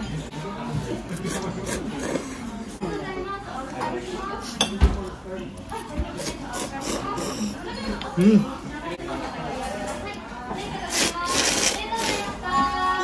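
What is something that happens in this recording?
A man slurps noodles and soup loudly, close by.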